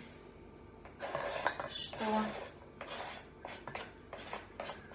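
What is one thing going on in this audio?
A knife scrapes chopped food off a board into a bowl.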